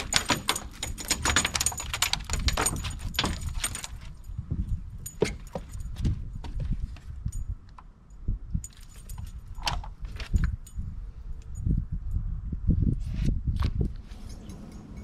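Feet and gear knock on a metal boat's deck.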